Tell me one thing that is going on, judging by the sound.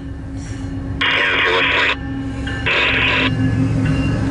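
A train horn blares loudly in two blasts.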